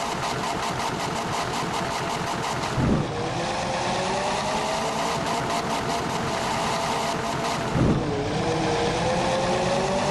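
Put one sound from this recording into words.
A bus engine hums and rises in pitch as the bus speeds up.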